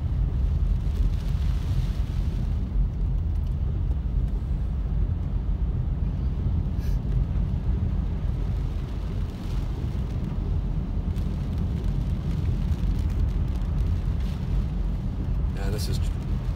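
A car engine and tyres rumble steadily on a wet road.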